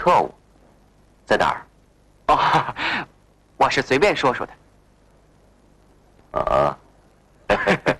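A young man answers nearby.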